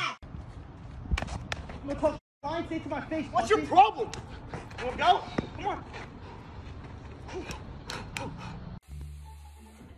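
Young men shout and laugh outdoors.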